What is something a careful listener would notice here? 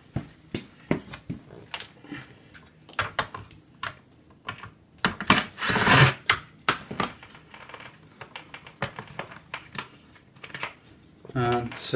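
Plastic trim creaks and clicks as a hand pulls on it.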